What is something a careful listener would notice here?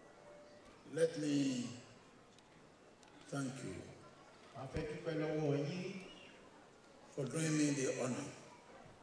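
A man speaks slowly and forcefully through a microphone and loudspeakers in a large echoing hall, pausing between phrases.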